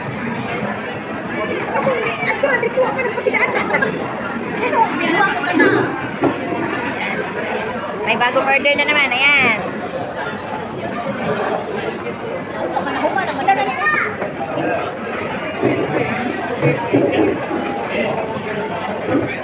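A woman talks and laughs close by.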